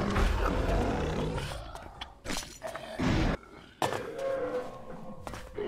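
A beast growls and roars.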